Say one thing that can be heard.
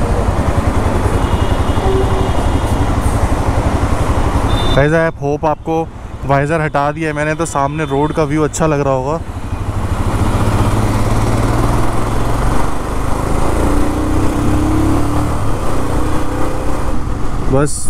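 A motorcycle engine rumbles close by.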